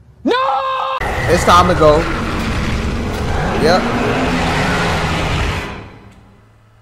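A monster roars loudly.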